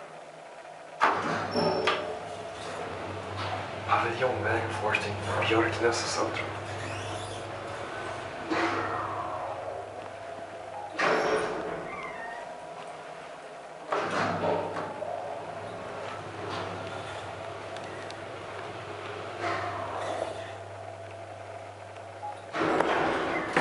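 An elevator motor hums steadily as the car moves.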